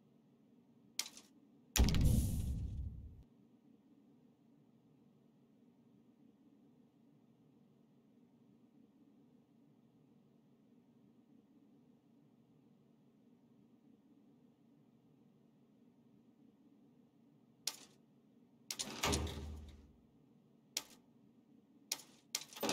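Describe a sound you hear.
Game menu clicks and whooshes sound as the menu changes.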